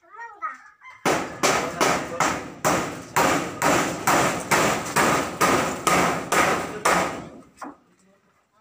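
A hammer pounds wood in a quick steady rhythm.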